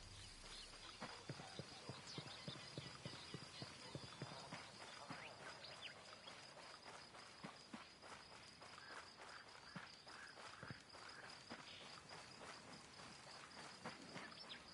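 Footsteps run quickly over pavement and grass.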